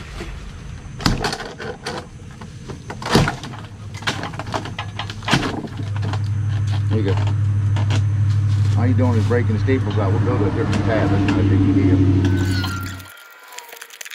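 Plastic siding panels clatter and knock.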